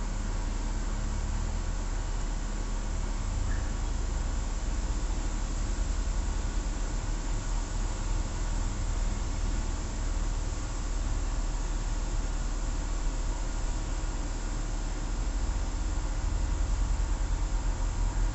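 Video game music plays steadily.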